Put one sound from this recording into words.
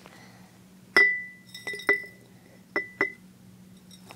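A glass jar clinks against a metal lid.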